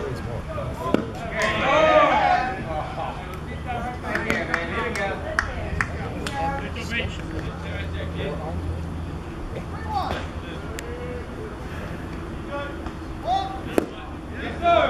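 A baseball pops into a catcher's leather mitt.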